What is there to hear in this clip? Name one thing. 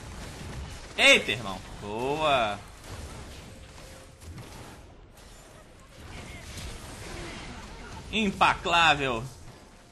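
Game sound effects of spells and blows ring out in short bursts.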